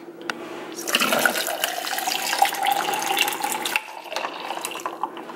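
Liquid pours into a plastic cup.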